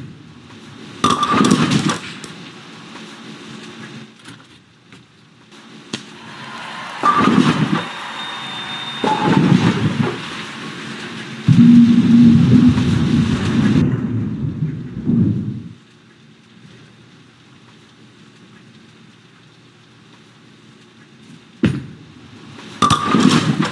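A bowling ball rolls down a lane with a low rumble.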